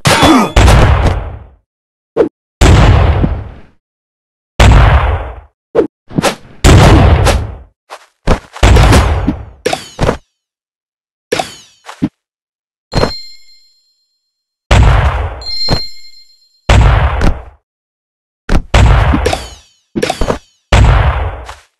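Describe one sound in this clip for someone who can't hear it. Sword slashes and heavy impacts thud in short bursts.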